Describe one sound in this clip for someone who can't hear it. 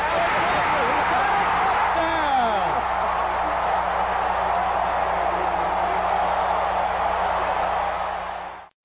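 A large stadium crowd cheers and roars loudly.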